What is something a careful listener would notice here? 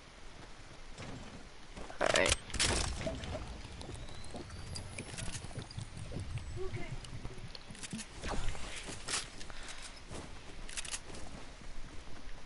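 Footsteps patter quickly across the ground.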